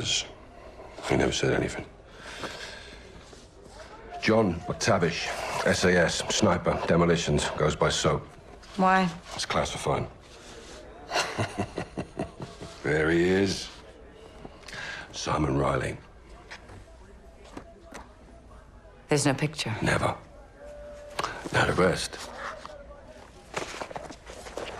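A man speaks calmly, heard close.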